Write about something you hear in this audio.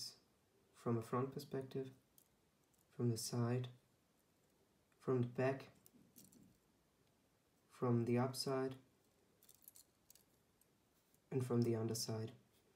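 Plastic toy parts click and rattle softly as hands handle them.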